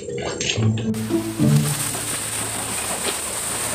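Waves wash onto a shore.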